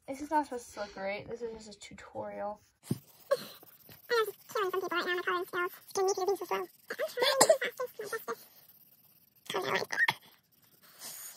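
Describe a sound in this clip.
A young girl talks close by with animation.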